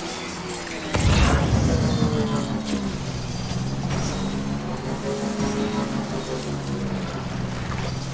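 A bike splashes into shallow water.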